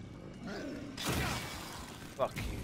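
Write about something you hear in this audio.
A loud explosion bursts with a roar.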